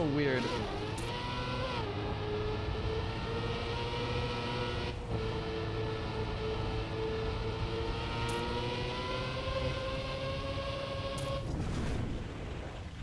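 A racing car engine hums steadily and rises in pitch.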